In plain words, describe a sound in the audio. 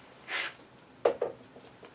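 A tool clicks as it is handled.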